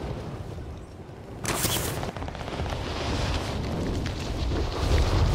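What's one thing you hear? Wind roars past during a free fall.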